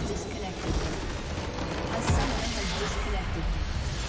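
A game's base structure explodes with a loud booming blast.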